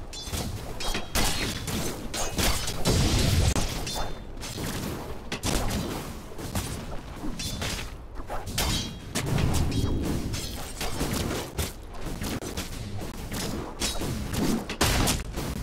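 Game weapons clash and strike in quick bursts.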